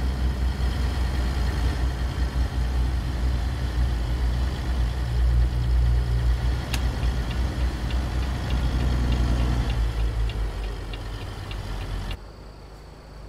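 A truck engine rumbles deeply at idle.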